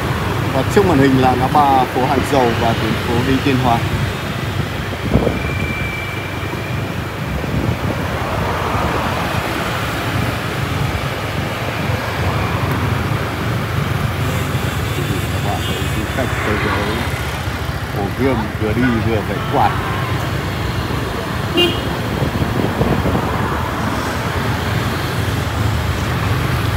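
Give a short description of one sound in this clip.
Motorbike engines hum steadily as traffic passes along a street.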